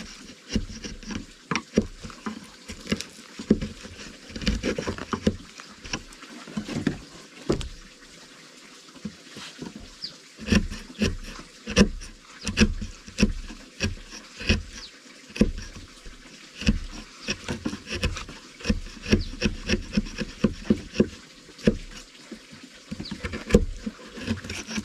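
A mallet knocks a chisel into wood in repeated sharp blows.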